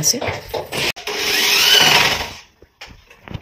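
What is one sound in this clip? An electric drill whirs into a surface.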